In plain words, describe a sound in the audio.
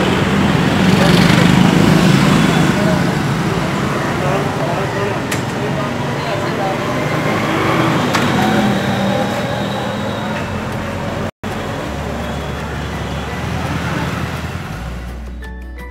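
Motorbike engines hum and putter as they ride past.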